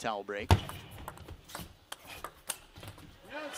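A ping pong ball clicks sharply back and forth off paddles and the table.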